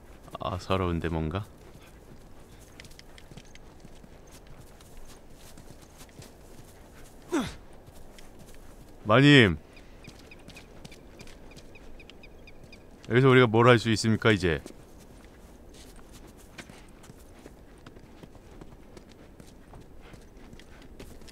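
Footsteps tread softly on grass and gravel.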